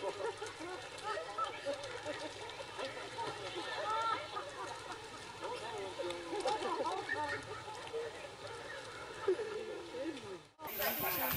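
An animal splashes in shallow water.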